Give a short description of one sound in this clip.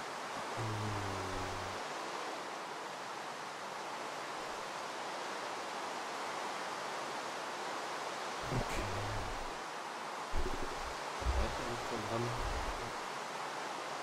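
A young man talks casually into a microphone in short bursts.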